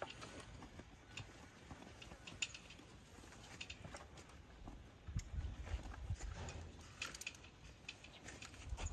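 A horse munches and crunches feed from a plastic bucket.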